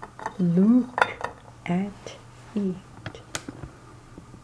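A glass cup clinks lightly against a plate as it is lifted.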